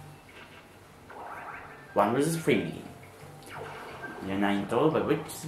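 Cheerful video game music and jingles play through a television speaker.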